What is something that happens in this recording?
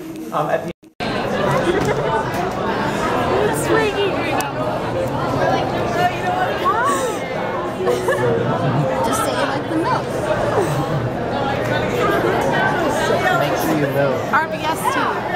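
A crowd of young people chatters loudly in a large echoing room.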